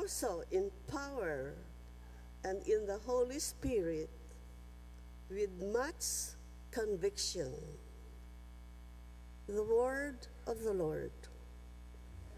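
An elderly woman reads out calmly through a microphone in a large echoing hall.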